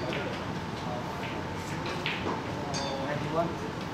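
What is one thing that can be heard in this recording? A ball is set down on the table with a soft knock.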